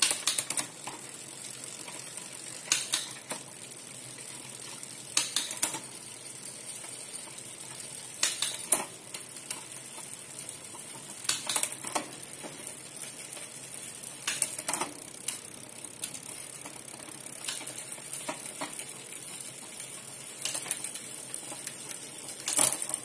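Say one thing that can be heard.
A bicycle rear derailleur clicks as the chain shifts between sprockets.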